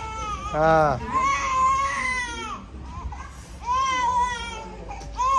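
A baby cries loudly close by.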